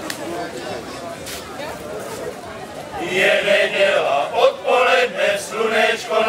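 A crowd of adults chatters at tables outdoors.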